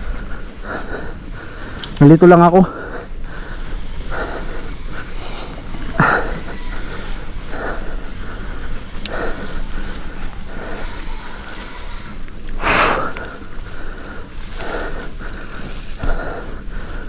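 Bicycle tyres crunch and rattle over a bumpy dirt trail.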